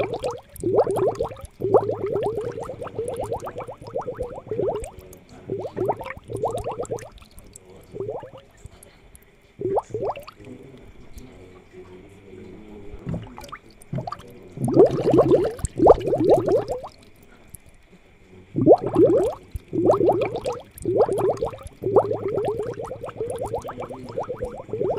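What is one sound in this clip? Water bubbles steadily in an aquarium.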